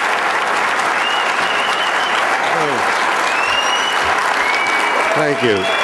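People in a crowd cheer and whistle.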